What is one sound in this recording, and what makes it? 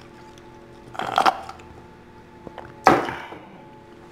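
A woman sips a drink loudly through a straw.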